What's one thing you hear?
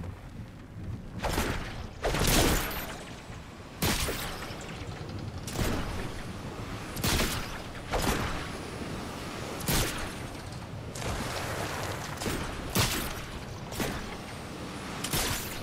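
Air rushes past during a fall through the air.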